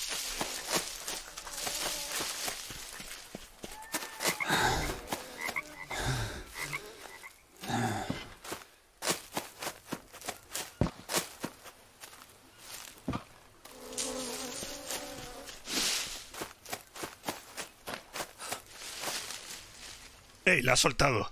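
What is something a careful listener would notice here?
Footsteps crunch and rustle through leafy undergrowth.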